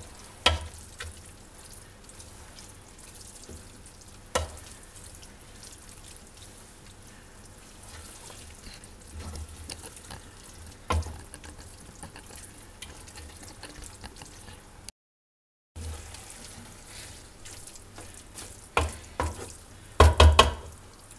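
A wooden spoon stirs a thick mixture in a metal pot.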